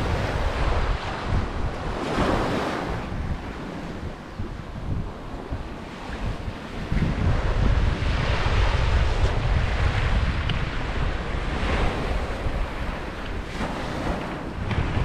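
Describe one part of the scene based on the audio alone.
Wind blows outdoors, rumbling across the microphone.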